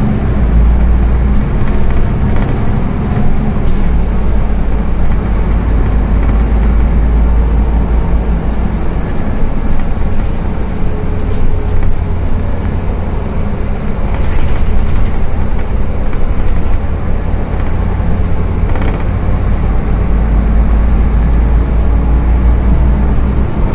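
A bus engine rumbles steadily from inside as the bus drives along.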